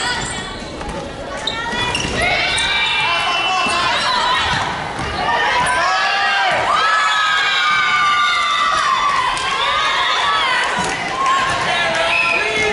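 A volleyball is struck with a slap.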